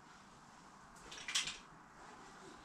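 Fabric rustles as a bag is handled nearby.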